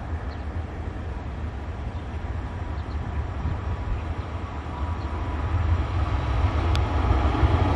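An electric train approaches with a growing rumble.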